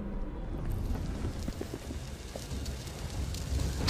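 Footsteps tread on a floor.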